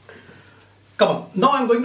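A middle-aged man speaks loudly and close by.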